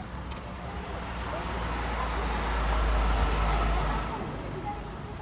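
A van drives past close by on a street.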